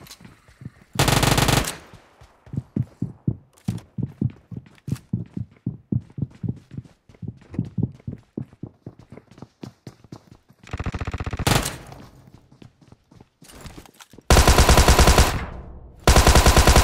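Bursts of rapid gunfire ring out loudly.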